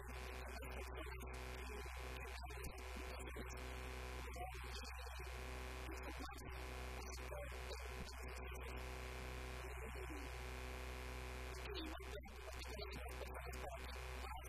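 A young man speaks calmly to an audience.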